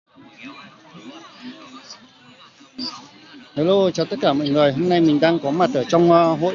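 People chatter softly in the background outdoors.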